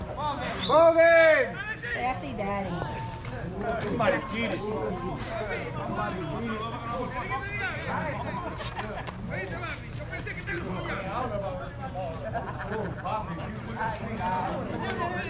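Men shout and call to each other outdoors across an open field.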